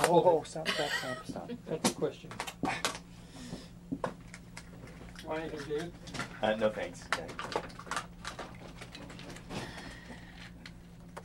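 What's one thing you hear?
A plastic water bottle crinkles and clicks.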